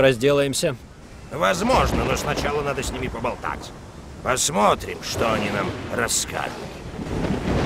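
A man speaks in a deep, theatrical voice.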